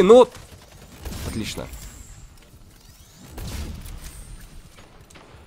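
Gunfire from a video game rattles in bursts.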